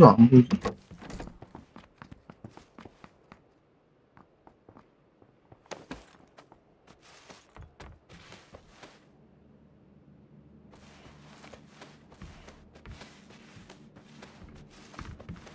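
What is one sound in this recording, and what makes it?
Footsteps and clothing scuff on a hard floor.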